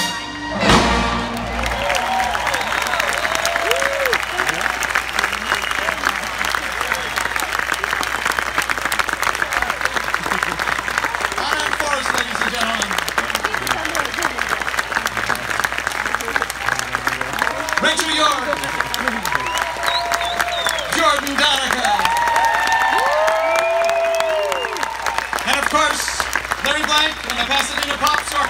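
A large crowd applauds loudly outdoors.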